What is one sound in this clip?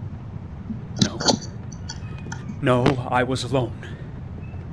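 A man answers quietly and hesitantly.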